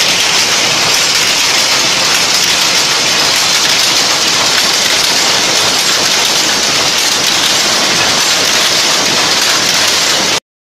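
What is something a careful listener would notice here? Machinery runs with a loud, steady, noisy clatter.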